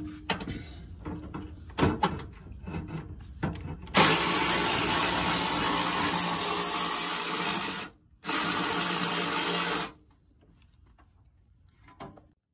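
Metal parts knock and clatter under working hands.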